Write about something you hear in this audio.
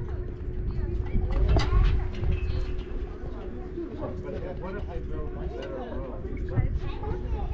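A crowd of men and women chatter at a distance outdoors.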